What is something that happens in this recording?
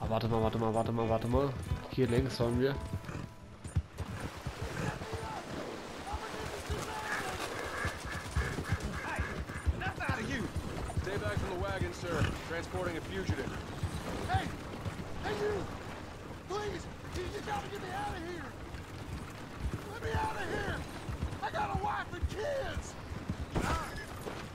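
A horse's hooves clop steadily on the ground.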